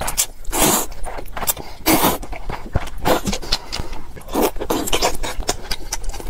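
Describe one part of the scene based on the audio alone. A man chews with wet smacking sounds close up.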